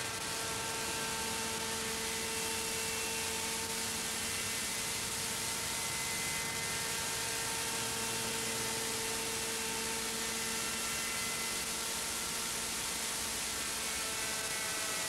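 A model helicopter's engine whines steadily as it flies close by.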